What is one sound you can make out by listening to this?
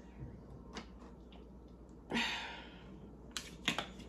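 Ketchup squirts from a plastic squeeze bottle.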